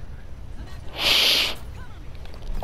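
A large creature lets out a loud screech.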